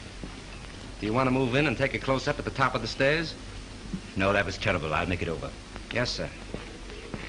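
A middle-aged man speaks firmly nearby.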